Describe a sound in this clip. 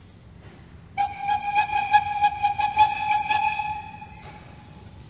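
A steam locomotive's whistle blows loudly for a few seconds.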